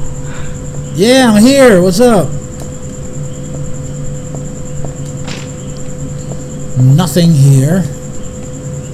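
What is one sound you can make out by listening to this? A young man speaks briefly and calmly close to a microphone.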